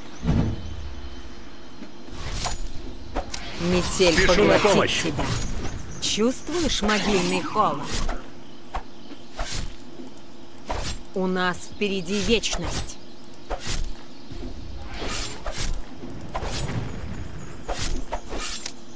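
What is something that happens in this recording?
Hits land with sharp impacts.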